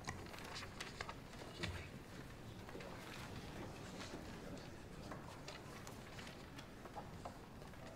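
Papers rustle and shuffle close by.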